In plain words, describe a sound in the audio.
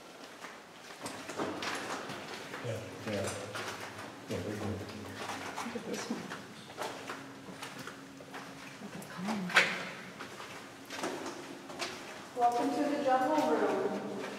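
A man talks nearby in a large, echoing space.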